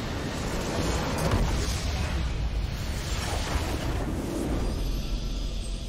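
A large structure explodes with a deep rumble.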